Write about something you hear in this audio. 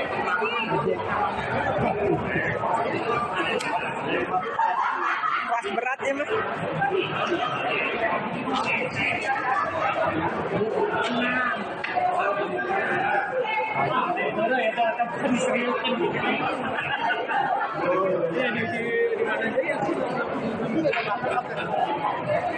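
A crowd of men and women chatter loudly all around in a large echoing hall.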